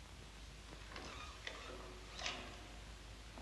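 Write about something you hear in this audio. A wooden chair creaks as a woman sits down.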